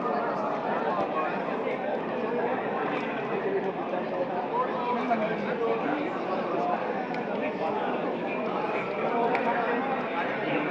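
A crowd of young men murmurs and talks all around.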